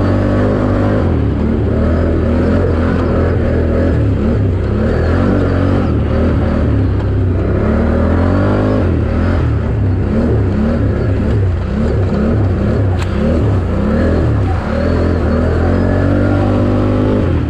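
A dirt bike engine roars loudly, revving up and down.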